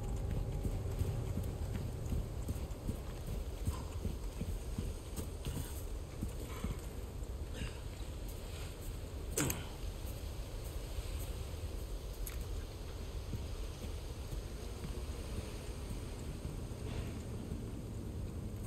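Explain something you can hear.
Footsteps crunch slowly on a dirt path.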